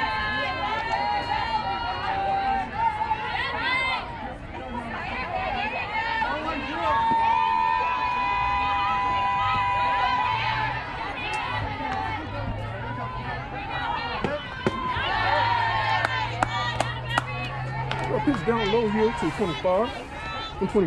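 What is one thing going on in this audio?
Spectators nearby cheer and call out with animation.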